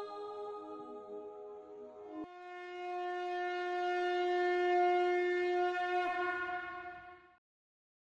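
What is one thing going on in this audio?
A young woman sings close by, then holds a long steady note.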